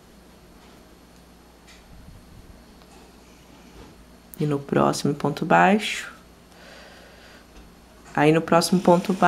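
Yarn rustles softly as a crochet hook pulls loops through.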